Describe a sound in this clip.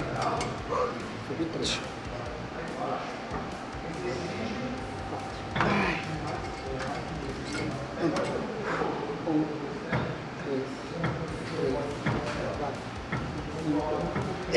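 A woman breathes hard with effort.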